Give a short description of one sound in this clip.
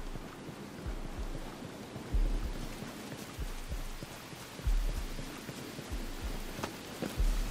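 Heavy footsteps thud steadily on hard ground.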